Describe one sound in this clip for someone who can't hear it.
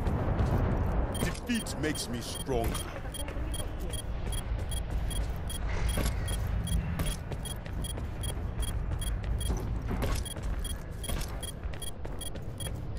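Footsteps tap steadily as a game character walks.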